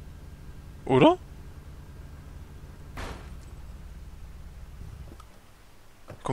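A car engine idles with a low rumble, then stops.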